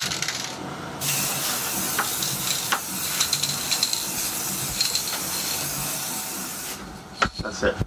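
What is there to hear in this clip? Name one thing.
A spray can hisses steadily.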